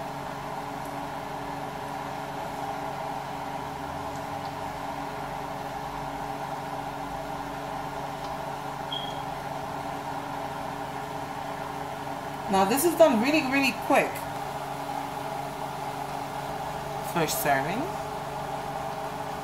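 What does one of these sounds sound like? Oil sizzles and bubbles steadily in a frying pan.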